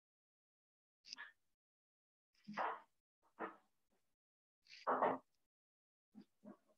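A marker squeaks briefly on a whiteboard.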